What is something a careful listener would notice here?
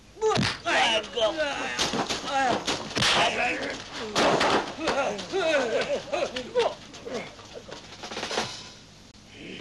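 Men shout and grunt loudly while fighting.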